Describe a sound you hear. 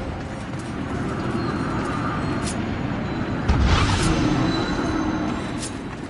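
A swirling portal hums steadily.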